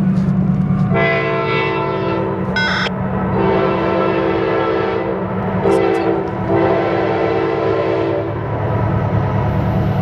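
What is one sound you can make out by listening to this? A train horn blares in long, loud blasts as a locomotive approaches.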